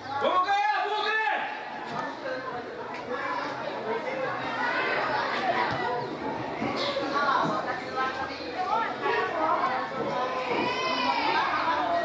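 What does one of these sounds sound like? Young male football players shout to each other outdoors.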